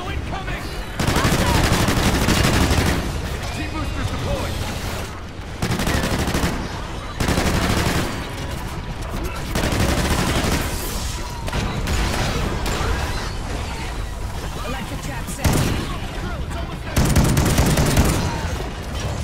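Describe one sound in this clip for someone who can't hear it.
Gunfire bursts out in loud rapid shots.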